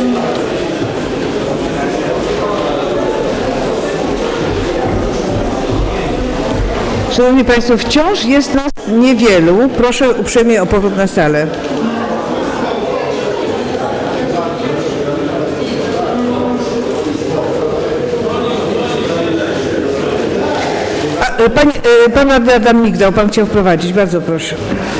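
Many people murmur and chatter in a large echoing hall.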